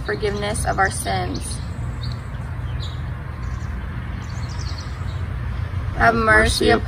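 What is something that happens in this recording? A young woman reads aloud calmly, close by.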